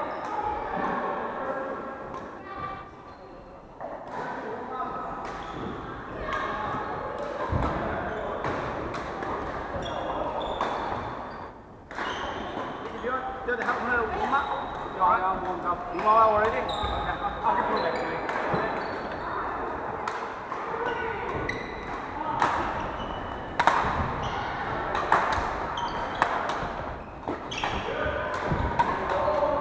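Shuttlecocks are struck with rackets, with sharp pops echoing in a large hall.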